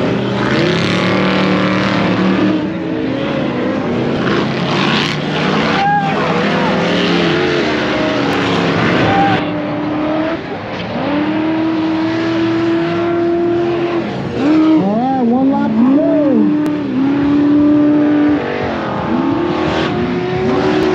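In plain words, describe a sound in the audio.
Dirt bike engines rev and whine, rising and falling in pitch.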